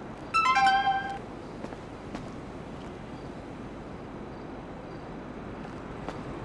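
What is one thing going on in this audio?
Footsteps tap softly on pavement.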